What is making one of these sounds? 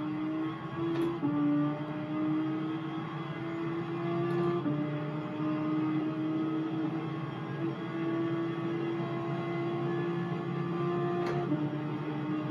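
A steering wheel's gear paddle clicks now and then.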